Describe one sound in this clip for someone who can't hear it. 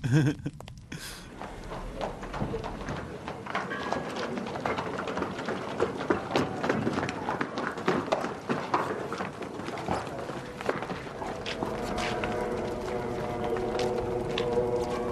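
Hooves clop on stone.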